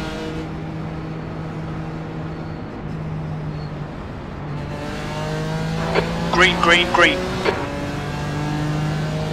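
A racing car engine drones steadily at high revs.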